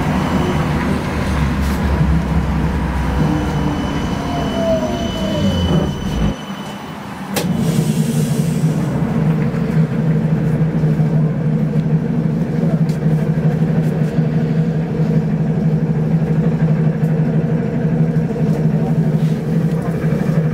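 A vehicle's engine hums steadily from inside as it moves slowly through traffic.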